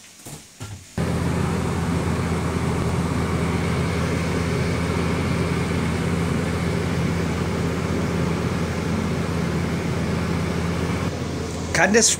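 Water and sauce bubble and simmer in pots.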